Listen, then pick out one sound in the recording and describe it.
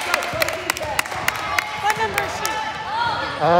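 A basketball bounces on a hard court in an echoing gym.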